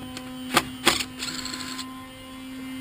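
A cordless drill whirs briefly.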